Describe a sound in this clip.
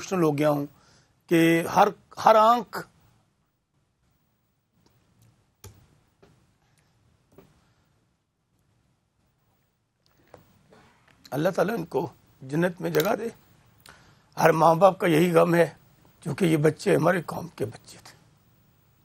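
A man speaks calmly and with feeling through a microphone, with pauses.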